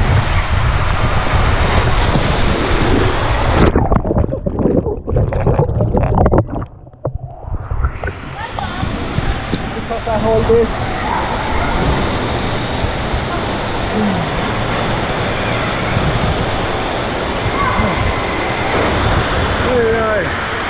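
Water rushes and splashes loudly in a large echoing hall.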